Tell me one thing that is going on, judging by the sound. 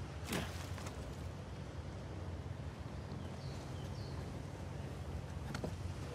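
Footsteps squelch through wet mud and grass.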